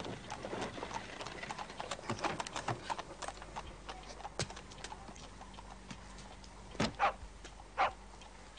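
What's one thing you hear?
Horses' hooves clop on a cobbled street.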